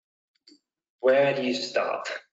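A young man speaks calmly into a close microphone, as on an online call.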